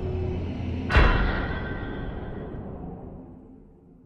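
A heavy boom sounds and rings out.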